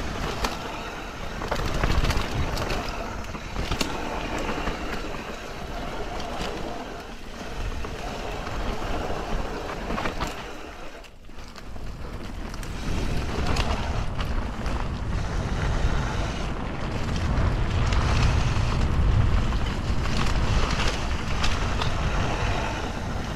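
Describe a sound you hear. Bicycle tyres roll and crunch over dry leaves and dirt.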